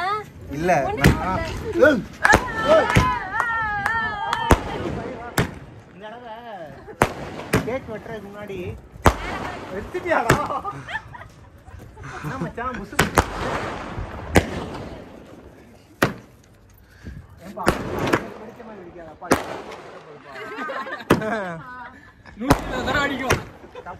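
Fireworks bang and crackle outdoors, one sharp burst after another.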